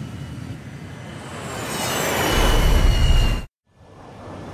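Jets roar past overhead, rising to a loud rush before cutting off.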